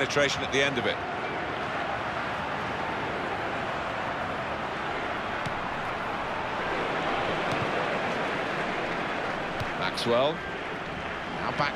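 A stadium crowd roars steadily in a large open arena.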